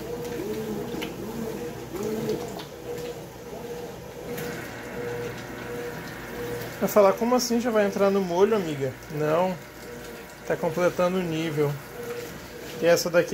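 A washing machine churns laundry in water with a steady hum.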